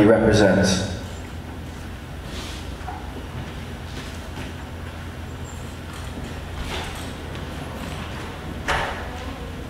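An audience murmurs quietly in a large hall.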